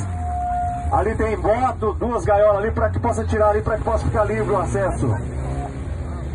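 A crowd of men shouts and cheers outdoors nearby.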